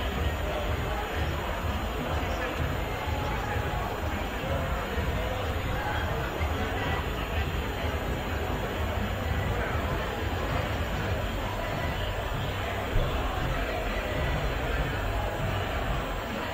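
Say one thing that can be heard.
A crowd murmurs and chatters in the distance outdoors.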